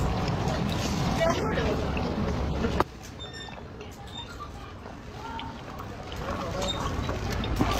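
A young woman gulps a drink from a can.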